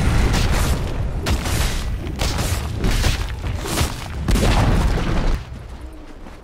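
Spell blasts and hits crash loudly in a fierce fight.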